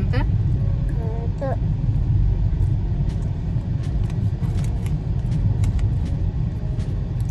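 A small child chews food with its mouth open.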